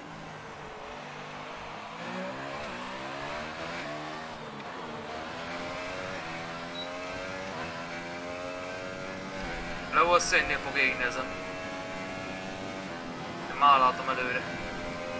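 A racing car engine whines steadily, rising and falling in pitch as the car shifts gears.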